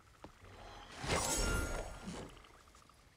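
A bright, shimmering chime rings out.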